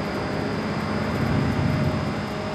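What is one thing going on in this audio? Another motorcycle's engine roars close by.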